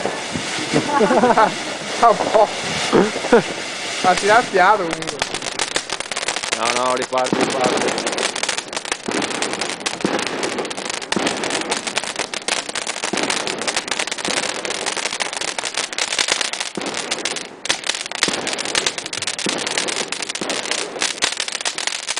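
A firework fountain hisses and roars steadily.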